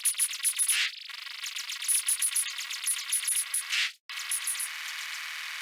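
Electronic laser shots zap in quick bursts.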